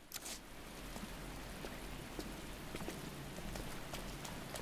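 Footsteps tread on a hard floor at a steady walking pace.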